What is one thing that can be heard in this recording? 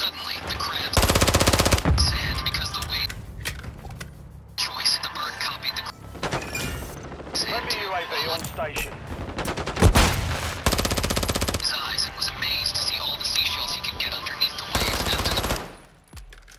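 Rapid gunfire blasts at close range.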